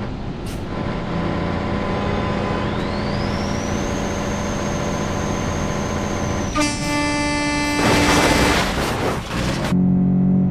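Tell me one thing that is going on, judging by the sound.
A car engine drones steadily at speed.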